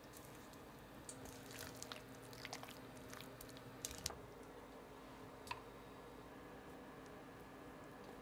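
Chopsticks scrape and tap against coated chicken.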